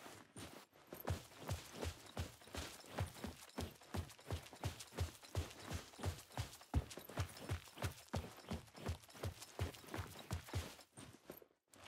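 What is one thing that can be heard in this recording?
Footsteps run quickly over gravel.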